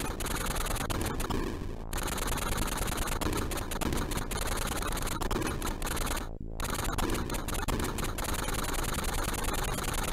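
Buzzy electronic game music plays steadily.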